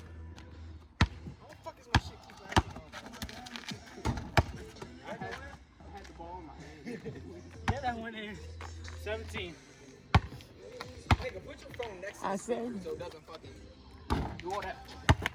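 A basketball bounces sharply on pavement.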